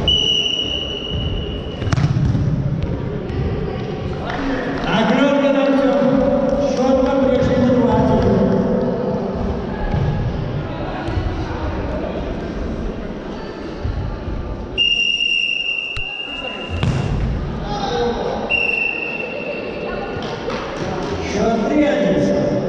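A ball is kicked and bounces with thuds in a large echoing hall.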